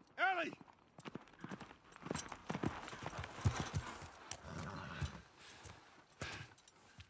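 A horse's hooves clop on hard ground as it walks closer.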